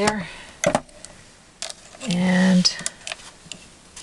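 A paper trimmer blade slides and cuts through paper.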